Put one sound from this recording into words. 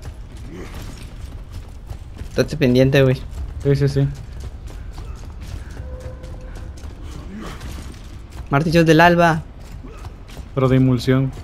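Heavy boots run on rocky ground.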